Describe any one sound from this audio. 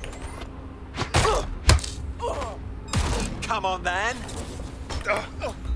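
Heavy blows land in a brief scuffle.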